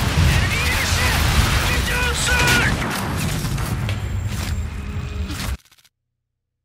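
Gunfire rattles loudly in a game.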